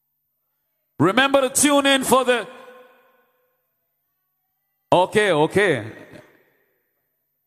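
A woman announces with animation through a loudspeaker.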